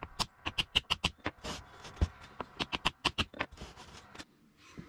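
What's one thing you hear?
A wooden stick taps against a metal motor shaft.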